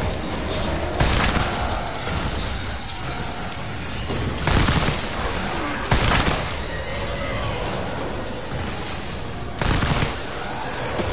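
Gunshots fire in short, loud bursts.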